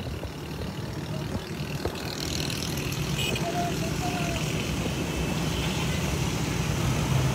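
Many motorcycle engines rumble and buzz close by, growing louder.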